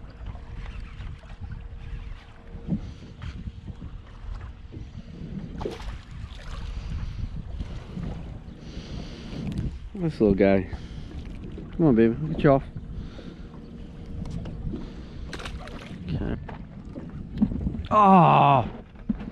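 Water laps against a small boat's hull.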